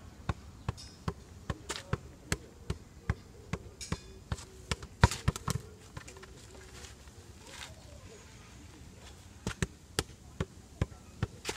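A rubber ball thuds against a man's feet again and again, at a steady pace, outdoors.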